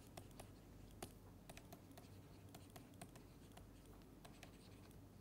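A stylus taps and clicks lightly on a tablet.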